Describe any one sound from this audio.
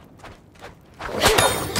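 A heavy chain clanks against a metal cage.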